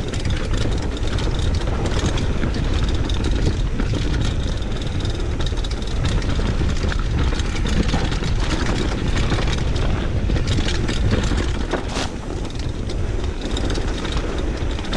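Bicycle parts clatter and rattle over bumps.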